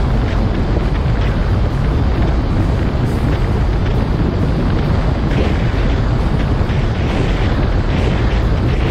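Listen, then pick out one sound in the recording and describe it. Wind roars loudly and steadily past a microphone.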